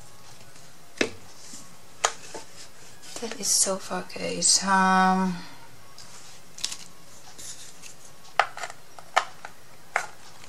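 A box knocks softly on a table as hands handle it.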